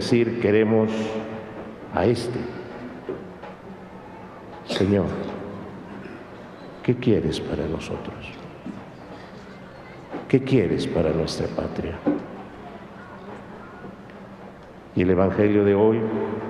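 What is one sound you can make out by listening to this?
A middle-aged man speaks slowly and calmly into a microphone, with pauses, in a reverberant hall.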